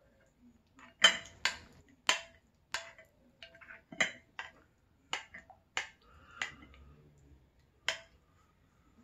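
Fingers scrape and crunch through a powdery substance in a glass bowl, close up.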